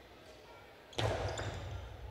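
A ball smacks hard against a wall in a large echoing hall.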